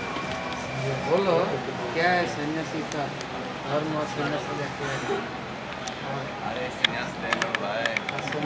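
Several men talk and laugh nearby.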